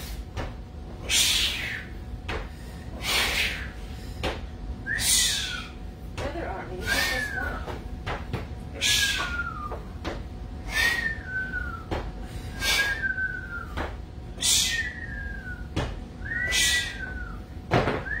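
A woman exhales sharply in a steady rhythm.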